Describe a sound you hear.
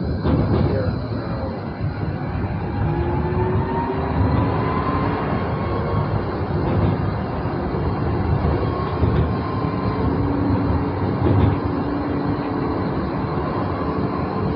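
A tram's electric motor whines, rising and falling in pitch.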